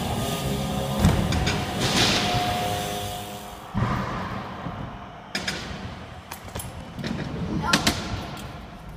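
Bike wheels land with sharp knocks on the ramp.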